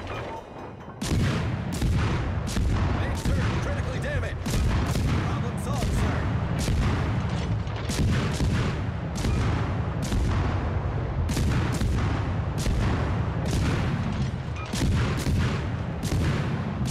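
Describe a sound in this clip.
Heavy naval guns fire in rapid, booming salvos.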